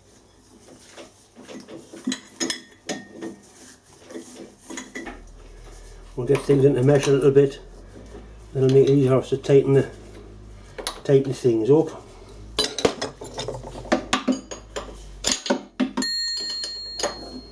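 A wrench clinks and clanks against metal gears.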